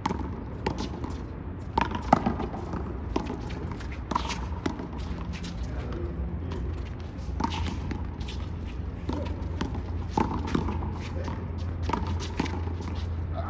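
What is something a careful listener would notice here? A small rubber ball smacks sharply against a wall and the ground, echoing off the wall.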